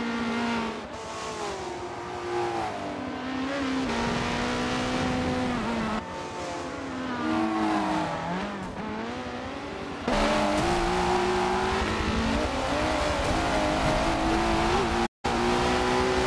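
Racing car engines roar and whine, shifting pitch as they accelerate and brake.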